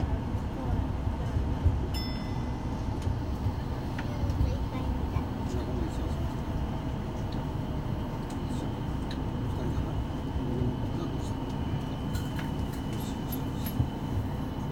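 A train rumbles steadily along the tracks, heard from inside.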